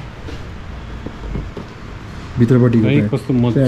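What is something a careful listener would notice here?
A shoe's fabric rustles as hands flex it.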